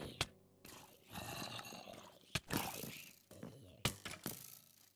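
Blows land with sharp, quick thuds.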